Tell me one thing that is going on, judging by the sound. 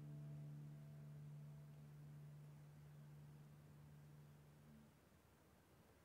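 A guitar chord rings out and slowly fades.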